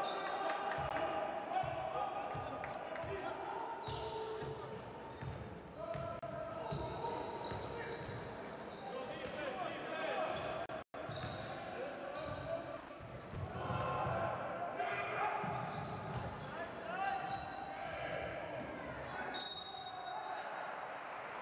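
A crowd murmurs in the stands.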